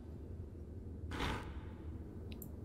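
A wooden latch slides open with a soft clunk.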